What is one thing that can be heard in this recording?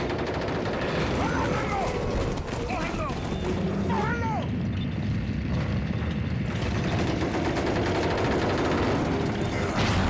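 A crowd of men shouts angrily nearby.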